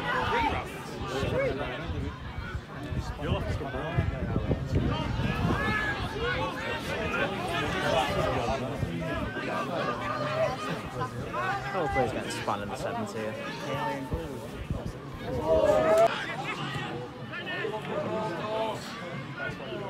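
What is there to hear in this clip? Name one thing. A large crowd of spectators chatters and calls out in an open stadium.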